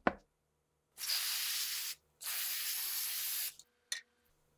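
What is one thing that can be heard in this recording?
An aerosol spray hisses in bursts onto a metal guitar bridge.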